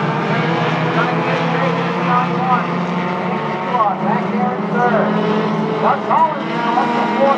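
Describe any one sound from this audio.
Tyres squeal on the track.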